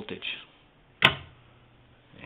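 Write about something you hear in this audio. A switch clicks once.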